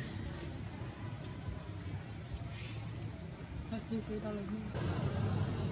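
A baby monkey squeaks softly close by.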